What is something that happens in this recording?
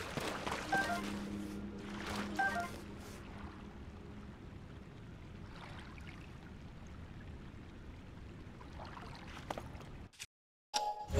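Footsteps crunch softly on damp ground.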